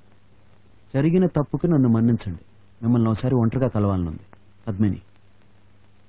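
A man speaks in a low, tense voice, close by.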